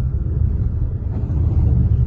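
A truck engine drones.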